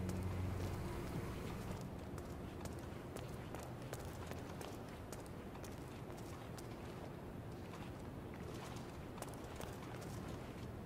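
Soft footsteps tap on a hard floor.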